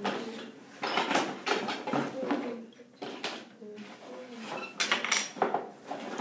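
Wooden blocks clatter on a wooden toy.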